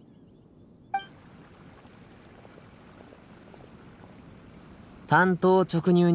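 Water splashes and churns in a stream.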